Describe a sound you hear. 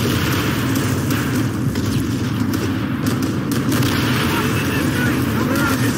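Gunfire and explosions rumble steadily in the distance.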